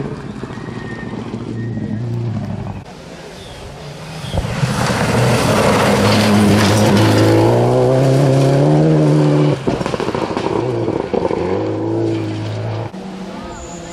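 A rally car engine revs hard and roars past, then fades away.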